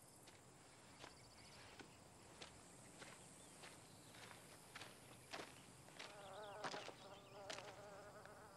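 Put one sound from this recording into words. Footsteps crunch on gravel, coming closer.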